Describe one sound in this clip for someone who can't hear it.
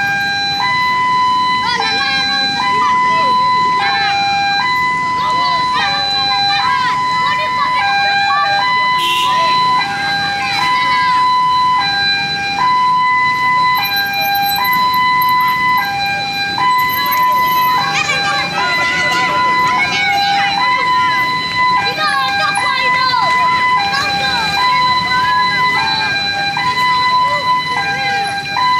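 A crowd of men, women and children murmurs while walking outdoors.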